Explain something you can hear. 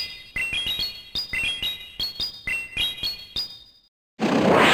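Bright game chimes ring out in quick rising runs.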